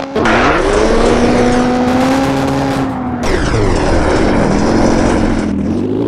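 Tyres skid and scrape on loose gravel.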